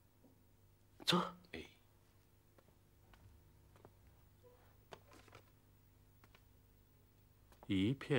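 An elderly man speaks briefly and firmly, close by.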